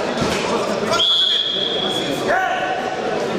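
A referee blows a long whistle.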